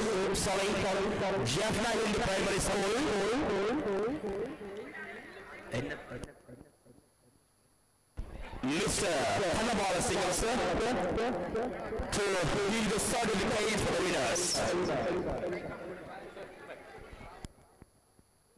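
A crowd cheers loudly outdoors.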